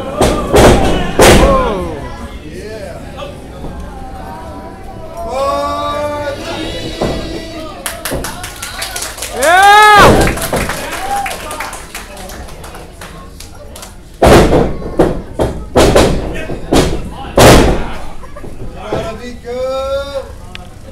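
Spectators shout and cheer with animation.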